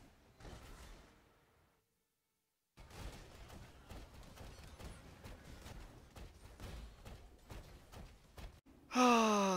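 Magic spells crackle and burst in quick, faint bursts.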